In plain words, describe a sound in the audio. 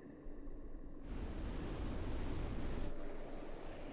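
A spacecraft's thrusters roar in a loud burst, then cut off.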